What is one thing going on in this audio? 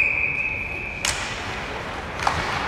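Hockey sticks clack sharply against a puck in an echoing arena.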